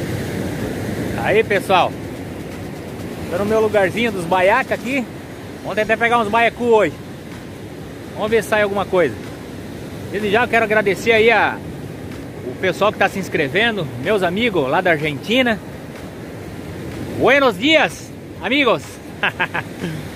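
A middle-aged man talks cheerfully, close by.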